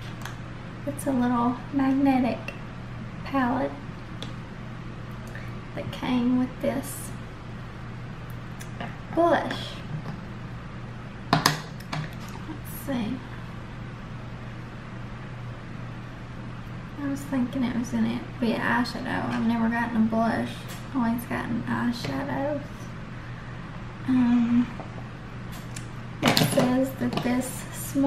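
A woman talks calmly and close by, in short phrases with pauses.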